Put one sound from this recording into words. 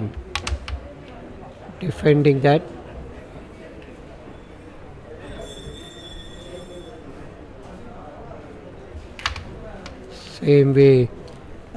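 Carrom pieces click sharply against each other on a wooden board.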